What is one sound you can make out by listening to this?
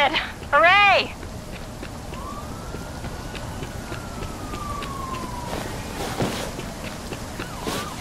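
Footsteps run quickly over wet concrete.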